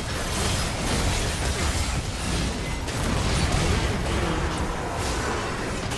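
Game spells crackle and blast during a busy fight.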